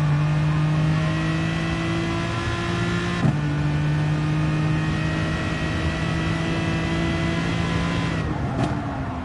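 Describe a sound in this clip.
A racing car engine roars at high speed, shifting up through the gears.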